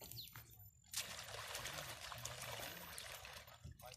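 A plastic basket swishes and splashes through water.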